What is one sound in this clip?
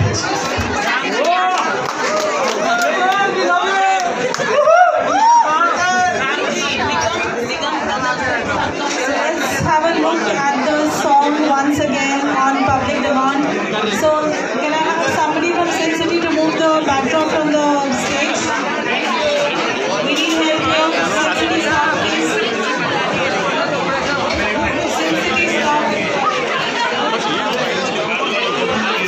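Young men talk and laugh close by.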